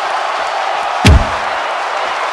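A guitar smashes against a body with a loud thud.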